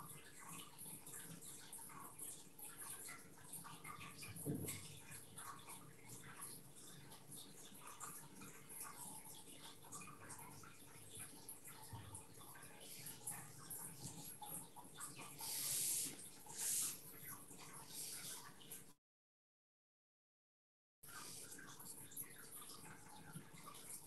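A brush softly dabs and brushes on paper.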